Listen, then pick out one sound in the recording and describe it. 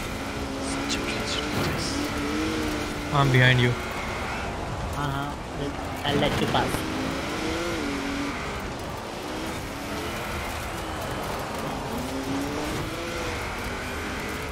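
A car engine revs and roars while racing.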